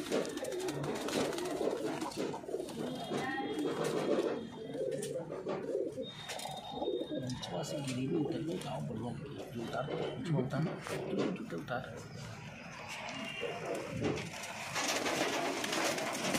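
Pigeon wings flap briefly.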